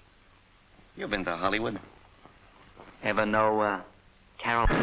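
A man speaks quietly and calmly.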